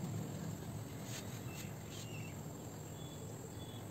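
Fabric rustles as a skirt is wrapped and adjusted.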